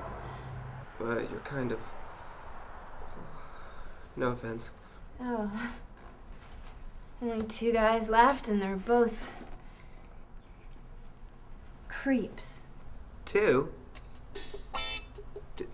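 A young man talks quietly at close range.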